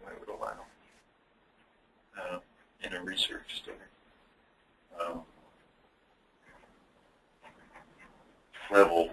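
A man speaks in short phrases over an online call.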